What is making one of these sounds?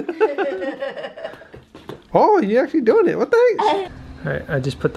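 A young woman laughs and squeals excitedly close by.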